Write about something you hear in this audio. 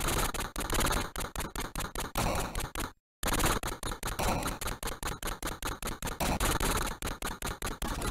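Rapid gunfire crackles from a video game.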